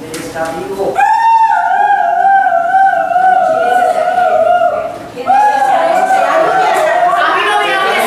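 A woman sings loudly with a wavering voice in a large hall.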